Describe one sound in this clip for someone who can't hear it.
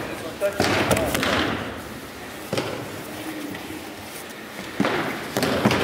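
A body thuds onto a padded mat.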